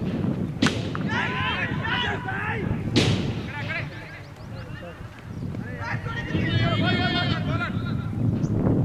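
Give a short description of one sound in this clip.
Men shout out loud across an open field.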